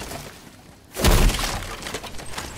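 A wooden chest smashes and splinters with a loud crash.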